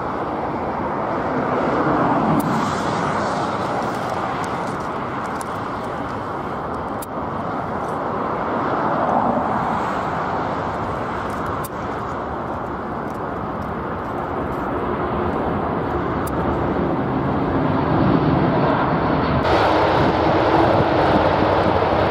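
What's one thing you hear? Jet engines roar loudly and steadily as a large airliner taxis by.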